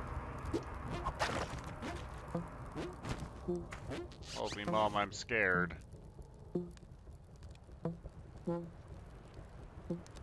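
Short electronic game sounds blip now and then.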